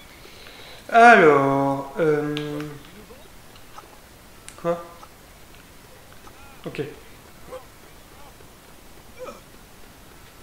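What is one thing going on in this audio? A young man talks briefly and casually into a close microphone.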